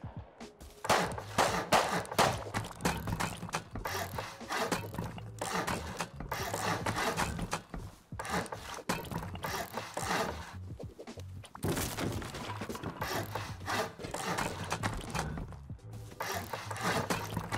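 Wooden building pieces clunk into place.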